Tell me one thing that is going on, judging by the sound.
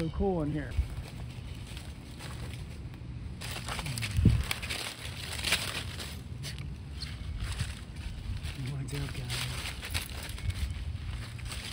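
Dogs rustle through dry leaves while sniffing the ground.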